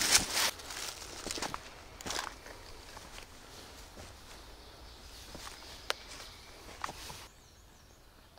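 Footsteps crunch on dry leaves and stones.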